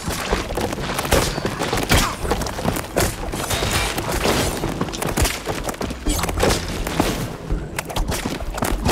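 Quick light footsteps patter on wooden boards.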